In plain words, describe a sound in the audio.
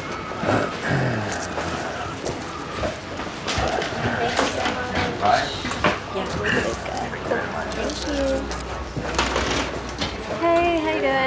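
Many people chatter in a busy room.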